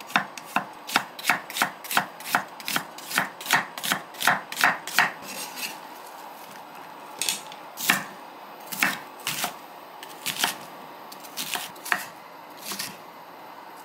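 A knife chops quickly and rhythmically against a wooden cutting board.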